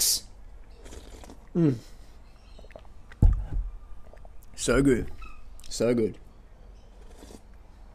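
A man gulps a thick drink.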